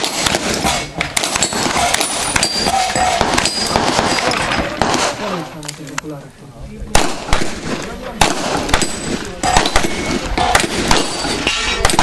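Gunshots crack in quick succession outdoors.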